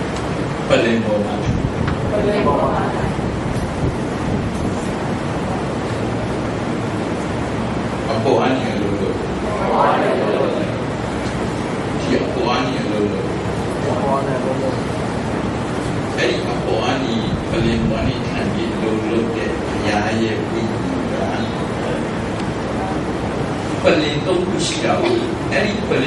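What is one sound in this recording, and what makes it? A man speaks steadily into a microphone, heard through a loudspeaker in an echoing room.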